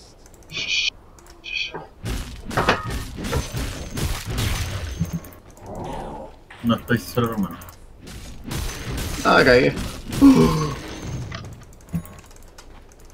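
Video game spell and combat effects crackle and clash in quick bursts.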